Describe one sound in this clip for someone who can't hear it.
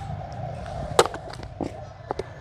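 Footsteps knock on loose wooden boards.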